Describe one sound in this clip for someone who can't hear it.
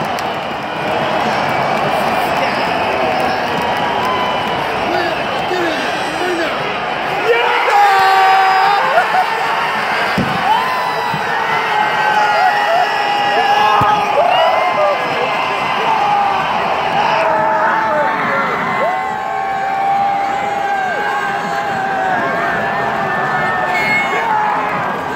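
A large stadium crowd roars and cheers loudly outdoors.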